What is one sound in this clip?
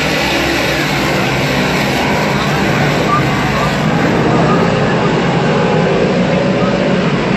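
Race car engines roar loudly as cars speed past outdoors.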